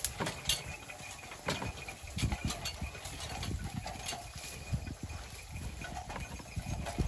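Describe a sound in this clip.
A wooden cart creaks and rattles as it rolls.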